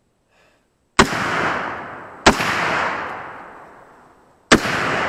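A rifle fires loud shots outdoors, each echoing away.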